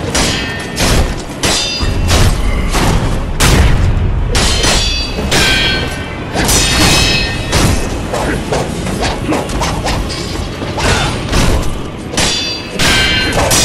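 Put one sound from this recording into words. Blades swish through the air in quick slashes.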